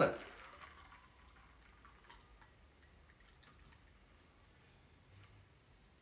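Liquid pours softly through a strainer into a glass.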